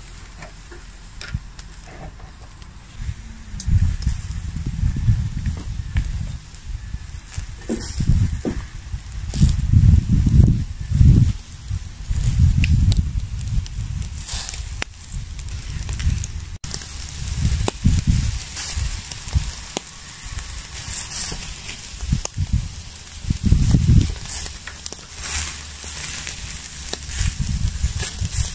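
Meat sizzles softly over hot coals.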